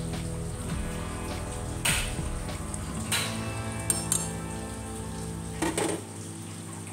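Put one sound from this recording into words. A metal ladle clinks and scrapes against a metal pot.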